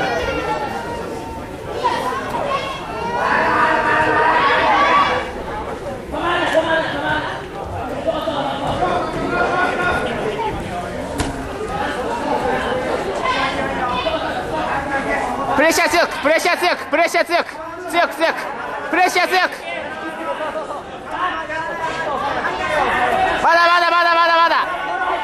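Several men shout loudly and excitedly from close by, echoing in a large hall.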